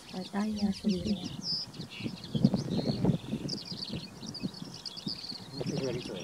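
A small bird chirps in quick, high bursts outdoors.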